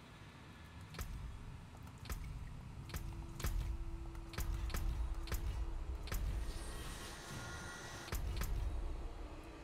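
Short interface clicks and whooshes sound as menus open and change.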